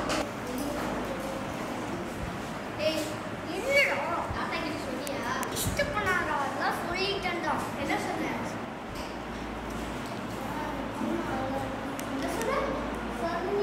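Young boys chatter and talk over one another in a room.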